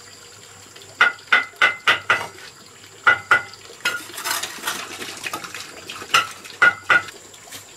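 A trowel taps bricks into wet mortar with sharp knocks.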